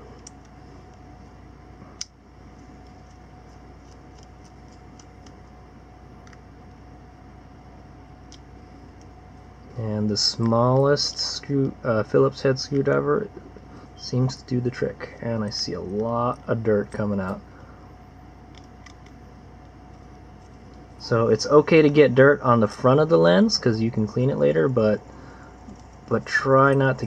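A small metal tool clicks and scrapes faintly against plastic.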